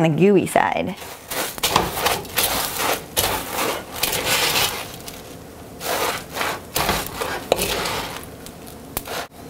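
A spoon scrapes and stirs in a metal pan.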